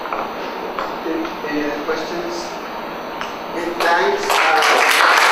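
A young man speaks briefly to an audience.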